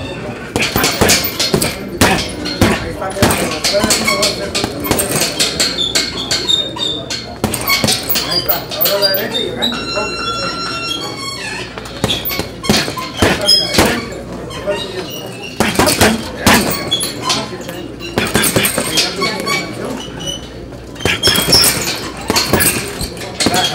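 Gloved punches thud rapidly against a heavy punching bag.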